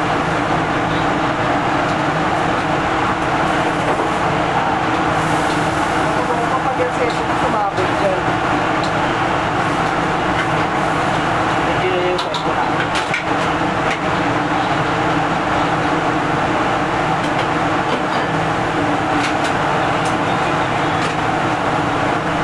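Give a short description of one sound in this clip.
A metal spatula clinks and scrapes against a wok.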